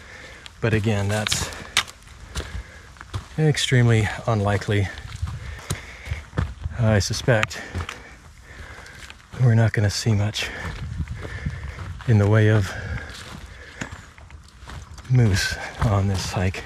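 A man speaks close by in short bursts, a little out of breath.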